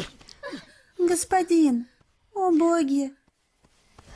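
Young women call out anxiously.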